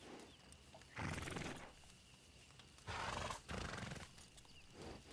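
A horse snorts and blows nearby.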